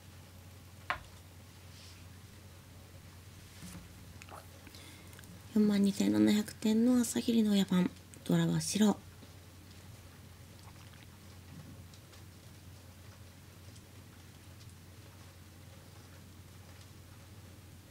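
Mahjong tiles click as they are placed on a table.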